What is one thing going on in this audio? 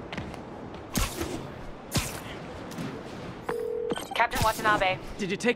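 Web lines shoot out with sharp thwips.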